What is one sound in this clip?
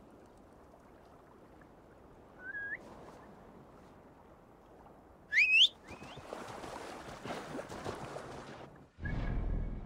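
Water laps gently against a wooden dock.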